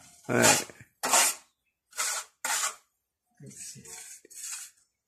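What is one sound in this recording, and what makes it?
A trowel scrapes across a ceiling in short, repeated strokes.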